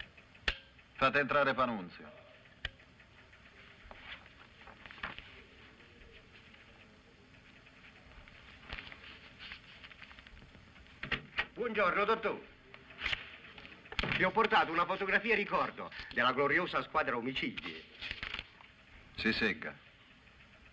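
A young man speaks calmly in a low voice.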